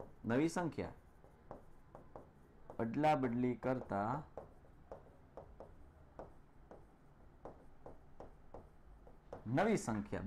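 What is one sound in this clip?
A marker scratches on a board.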